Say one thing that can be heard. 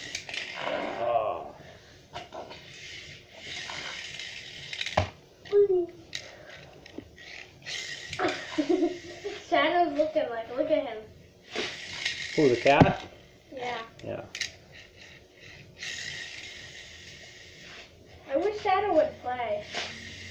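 A small toy car rolls across a hard floor.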